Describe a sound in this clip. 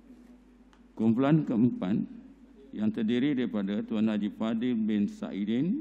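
A man speaks steadily through a microphone and loudspeakers in an echoing hall.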